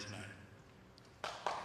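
A man speaks briefly through a microphone in a large hall.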